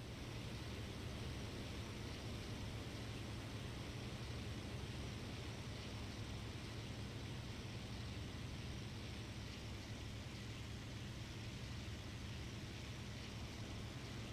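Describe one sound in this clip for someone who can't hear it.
Wind rushes steadily past an aircraft canopy.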